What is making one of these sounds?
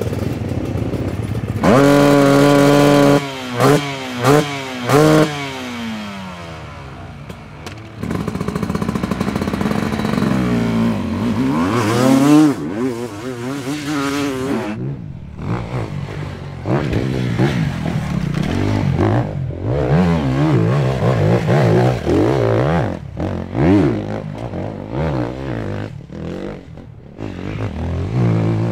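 A dirt bike engine revs loudly and roars, rising and falling in pitch.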